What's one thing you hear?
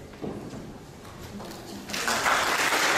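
A woman speaks to an audience.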